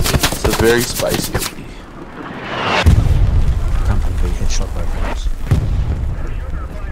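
Footsteps run quickly over dirt and gravel.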